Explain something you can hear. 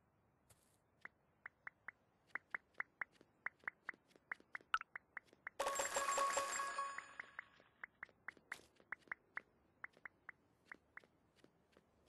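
Light footsteps tap quickly and evenly.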